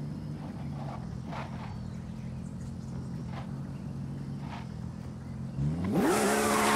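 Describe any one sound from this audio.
A sports car engine idles with a low rumble.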